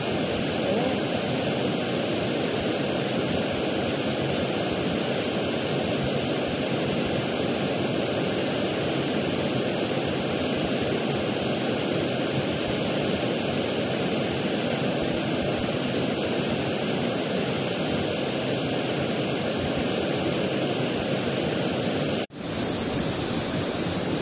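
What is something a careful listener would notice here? A waterfall rushes steadily into a pool nearby.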